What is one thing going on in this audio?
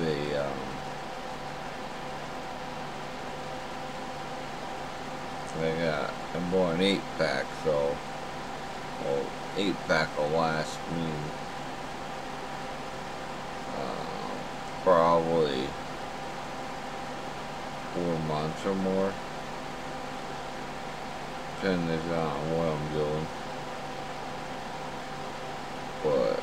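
A middle-aged man speaks calmly in short bursts, close to a microphone, with long pauses.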